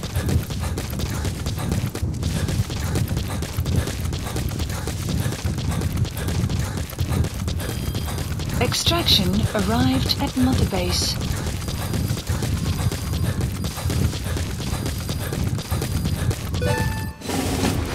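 Footsteps run quickly over dry gravel and dirt.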